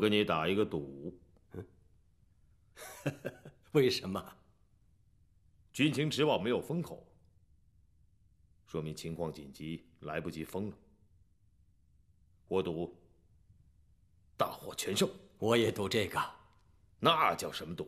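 A second middle-aged man answers in a low, measured voice.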